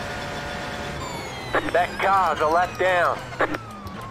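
A racing car engine drops in pitch as the car brakes and downshifts.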